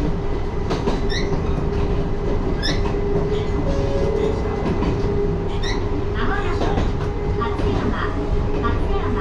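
A train's motor hums with a steady drone.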